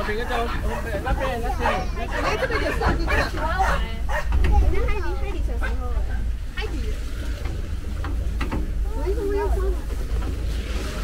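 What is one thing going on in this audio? Children talk and chatter excitedly nearby.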